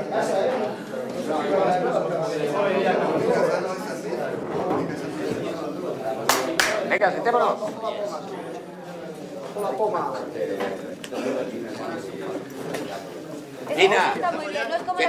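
Several men talk and murmur together.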